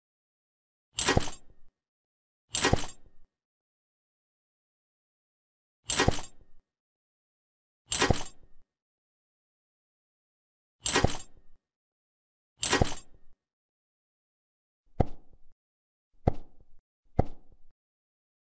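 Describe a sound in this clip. Short game pop sounds mark each new unit placed on the board.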